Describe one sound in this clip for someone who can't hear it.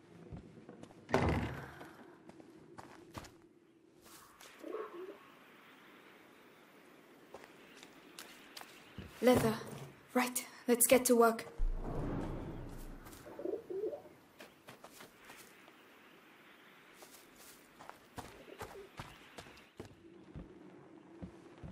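Footsteps crunch on gravel and grass.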